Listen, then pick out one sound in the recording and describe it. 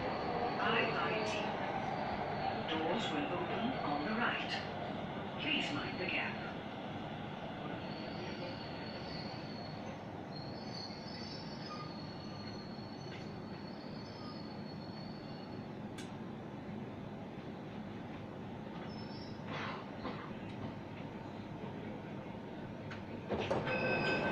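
A train rumbles steadily as it rolls along and slows to a stop.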